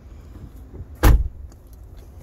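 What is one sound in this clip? A car door thuds shut.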